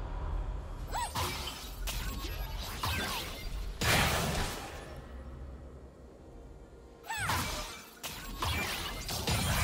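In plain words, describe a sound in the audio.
Magic spells whoosh and crackle in bursts during a fight.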